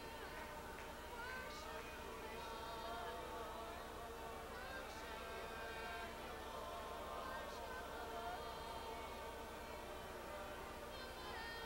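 A man speaks with feeling through a headset microphone over a loudspeaker.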